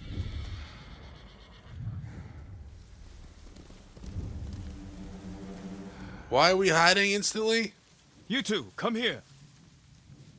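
Tall grass rustles as someone moves through it.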